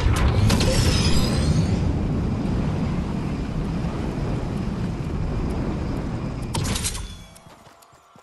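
Wind rushes loudly past a glider in flight.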